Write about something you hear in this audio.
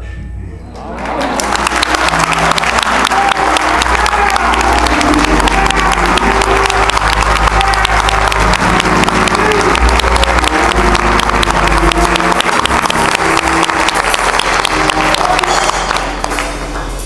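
A congregation claps and cheers loudly.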